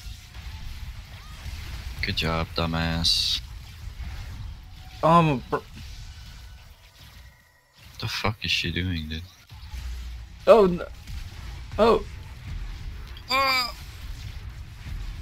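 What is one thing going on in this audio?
Fantasy battle sounds clash and whoosh with magic blasts and hits.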